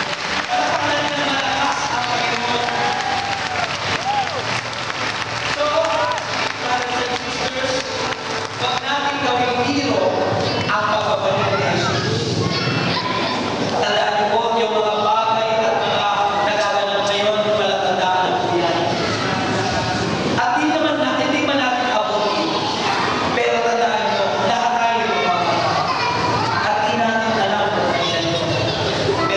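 A man speaks with animation through a microphone and loudspeakers, echoing in a large open space.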